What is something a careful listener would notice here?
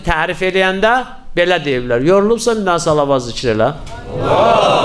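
A middle-aged man chants in a mournful, singing voice through a microphone in a reverberant room.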